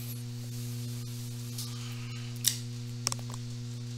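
Playing cards are tapped and slid on a table.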